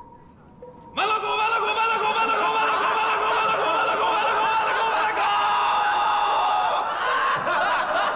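A young man shouts loudly and repeatedly.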